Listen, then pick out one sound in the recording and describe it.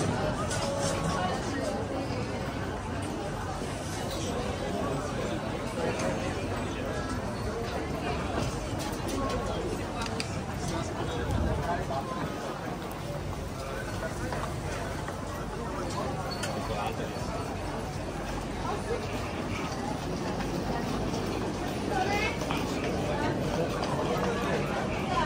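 A crowd of people chatters all around, outdoors.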